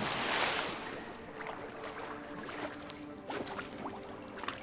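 Water sloshes as someone wades and swims.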